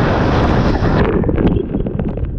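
Water splashes loudly as a rider plunges into a pool.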